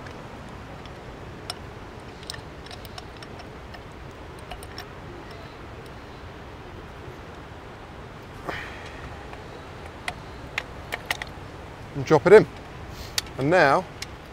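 Tripod parts click and knock as they are adjusted by hand.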